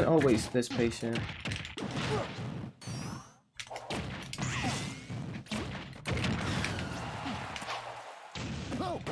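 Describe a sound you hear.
Punches and blasts from a fighting game hit rapidly.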